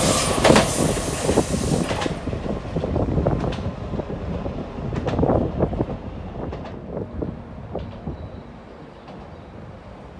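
A train rumbles away into the distance and fades.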